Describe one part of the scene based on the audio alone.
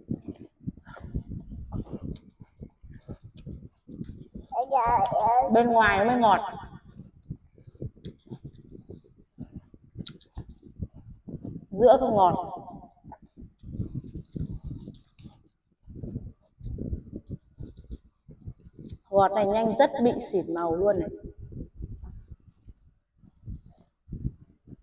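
A knife scrapes and cuts through fruit skin.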